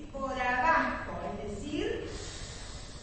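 A woman speaks into a microphone with animation in an echoing room.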